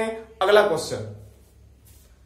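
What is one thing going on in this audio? A young man speaks close to the microphone.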